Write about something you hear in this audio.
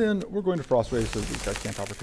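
Ice crystals shatter with a bright crackle.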